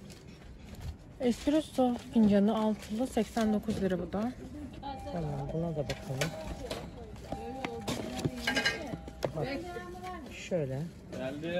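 A cardboard box rustles and scrapes as it is handled.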